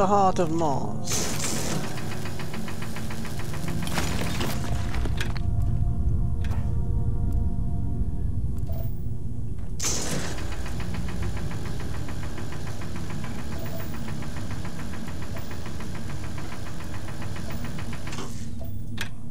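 A laser hums with a steady buzz.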